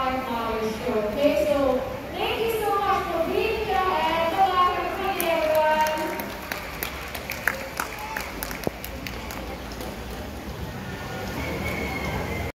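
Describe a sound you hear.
A crowd murmurs and chatters softly.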